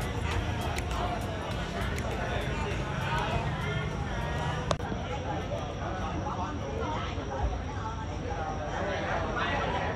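A crowd of men and women chatter at once in a busy room.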